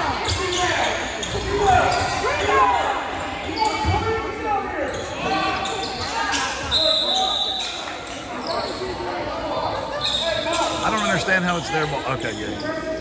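A crowd of spectators chatters and cheers nearby in a large echoing gym.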